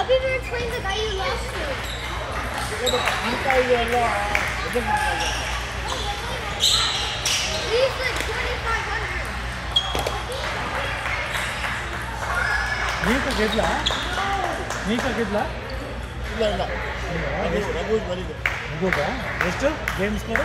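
Table tennis balls click rapidly on paddles and tables.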